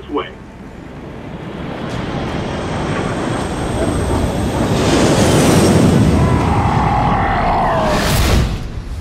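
A jet engine roars loudly as an aircraft flies over.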